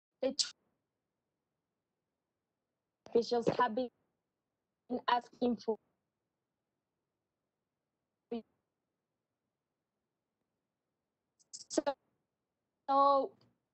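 A young woman speaks calmly in short bursts over an online call.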